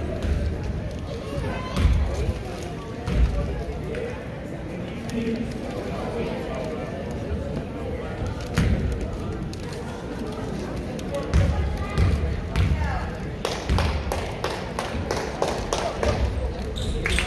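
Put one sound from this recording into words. A small crowd of spectators chatters in an echoing gym.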